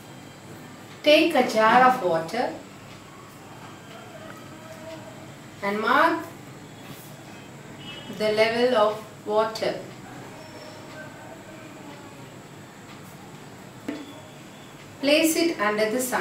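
A woman speaks calmly and clearly close to a microphone, in short phrases with pauses.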